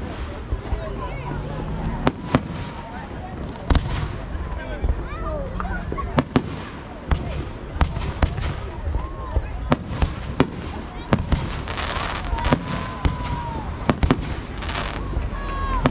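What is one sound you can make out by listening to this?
Fireworks burst with loud bangs and pops.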